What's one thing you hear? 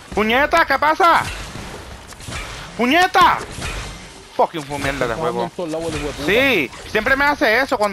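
A pickaxe strikes rock and wood with sharp knocks.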